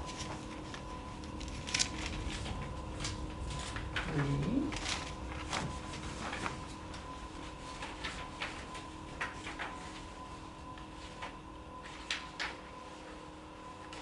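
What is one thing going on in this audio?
Papers rustle and shuffle nearby.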